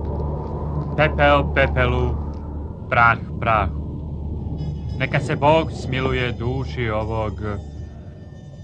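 A man reads out solemnly.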